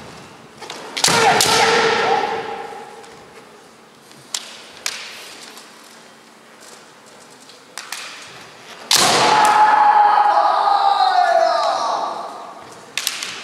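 Young men shout loud, drawn-out cries in a large echoing hall.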